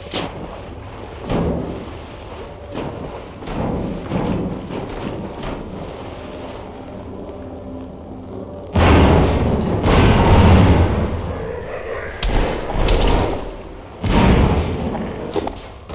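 Water gurgles and bubbles in muffled bursts.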